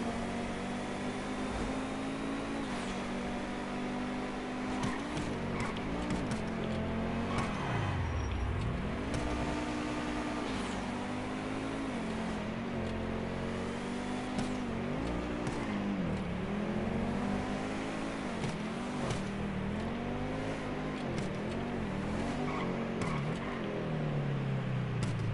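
A sports car engine roars and revs up and down as it speeds along.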